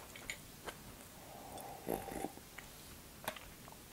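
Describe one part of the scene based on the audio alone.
A young woman sips a drink from a mug.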